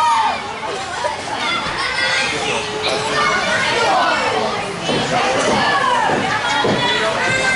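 A crowd of men and women shouts and cheers in an echoing hall.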